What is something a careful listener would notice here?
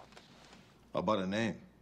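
A middle-aged man speaks briefly up close.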